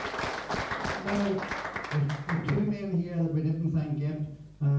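An older man sings into a microphone, heard through a loudspeaker.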